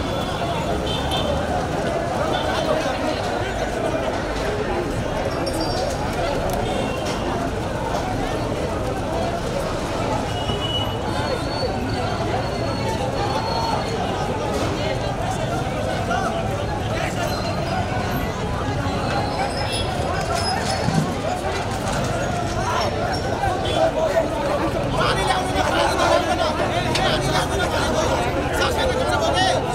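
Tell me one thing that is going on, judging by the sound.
A crowd of men shouts and talks loudly outdoors.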